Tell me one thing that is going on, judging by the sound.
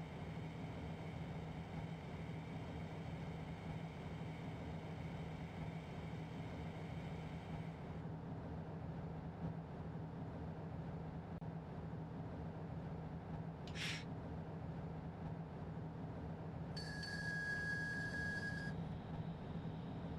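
An electric locomotive hums steadily as it rolls along the rails.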